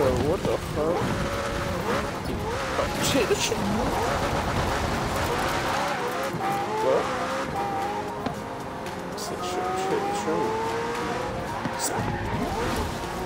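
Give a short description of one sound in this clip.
A sports car engine revs high and changes gear as the car speeds along.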